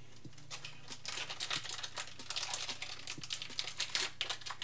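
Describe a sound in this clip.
Foil wrappers crinkle and tear.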